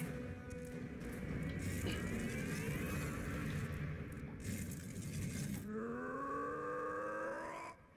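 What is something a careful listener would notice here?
A heavy stone block scrapes slowly along a stone floor.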